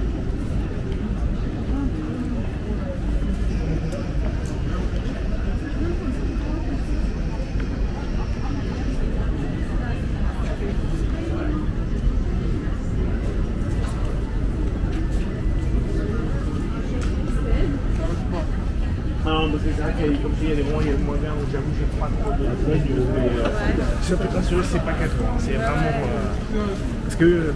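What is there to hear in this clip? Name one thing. A crowd of men and women chatters outdoors in the background.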